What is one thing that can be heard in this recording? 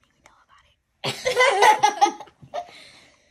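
Young children laugh and shout loudly close by.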